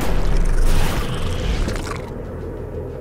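A fiery blast crackles and roars.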